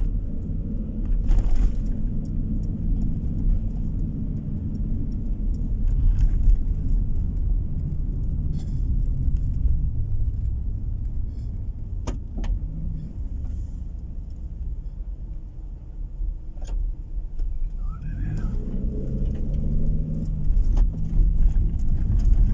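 Tyres rumble over the road surface.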